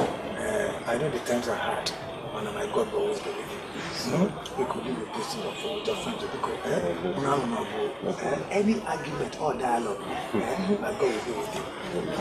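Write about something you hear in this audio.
An elderly man speaks with animation nearby.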